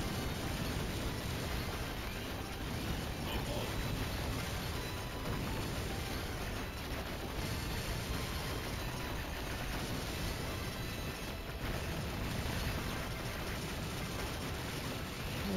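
Fast electronic game music plays throughout.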